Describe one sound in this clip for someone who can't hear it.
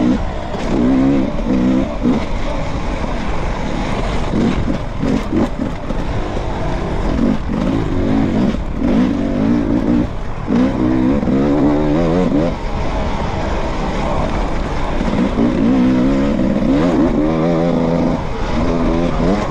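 A dirt bike engine revs up and down, loud and close.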